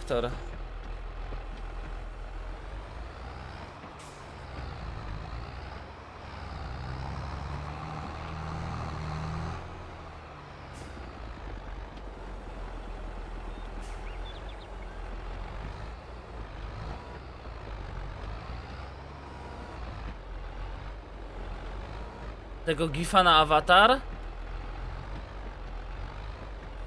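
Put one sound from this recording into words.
A tractor engine hums steadily and revs up at times.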